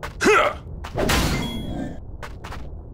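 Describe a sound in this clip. A sword slashes into a monster with a heavy hit.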